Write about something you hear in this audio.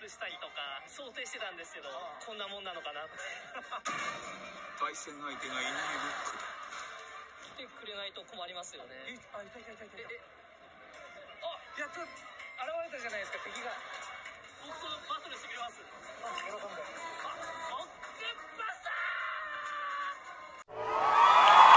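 A young man talks with animation into a microphone, heard through a television speaker.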